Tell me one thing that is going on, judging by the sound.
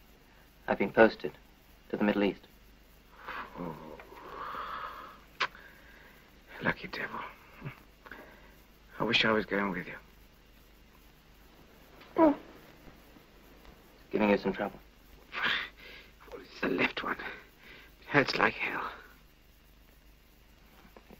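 A man lying down answers in a weak, low voice.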